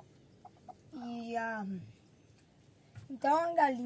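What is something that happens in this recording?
A hen squawks loudly from a nest box.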